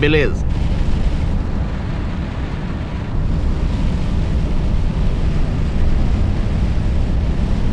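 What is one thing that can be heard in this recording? Windscreen wipers swish back and forth.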